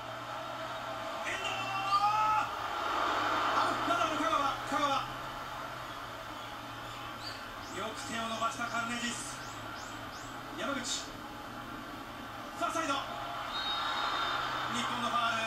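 A television broadcasts a football match with a roaring stadium crowd.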